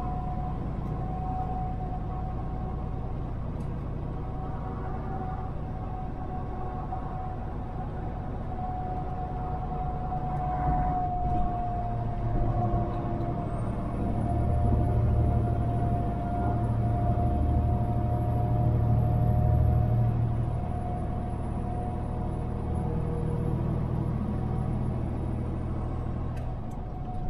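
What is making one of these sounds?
Tyres roll and hum on the road.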